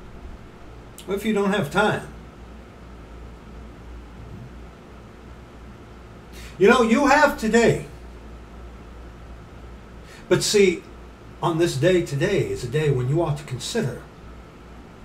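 A middle-aged man speaks close to the microphone in short bursts.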